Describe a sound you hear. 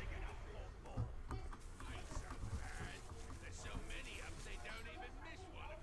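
Dry leaves rustle as someone creeps through bushes.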